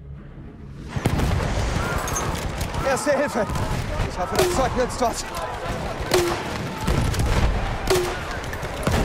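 Explosions boom and rumble nearby.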